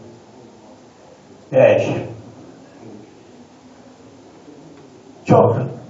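A man speaks through a microphone and loudspeaker in a large room.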